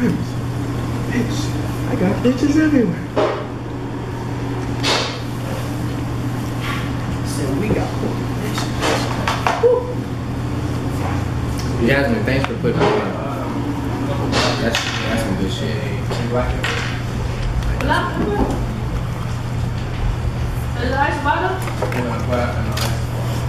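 A young man talks casually up close.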